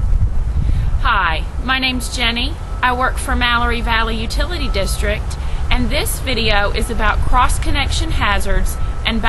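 A woman speaks calmly and close by, outdoors.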